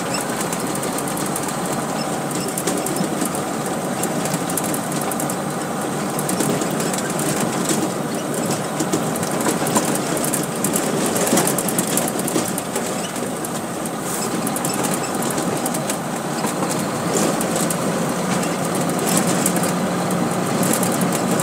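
A truck engine rumbles steadily inside the cab.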